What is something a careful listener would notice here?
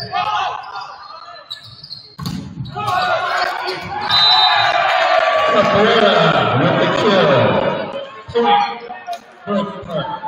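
Players shout to each other on the court.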